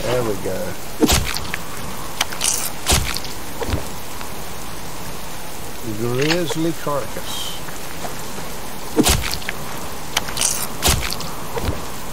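A hatchet chops wetly into a carcass.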